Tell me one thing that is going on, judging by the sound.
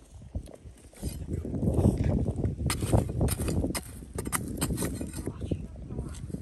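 A digging tool scrapes and crunches into loose, stony dirt.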